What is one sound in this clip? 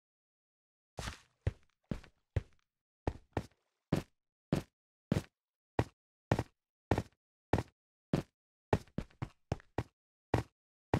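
Stone blocks are set down one after another with short, dull knocks.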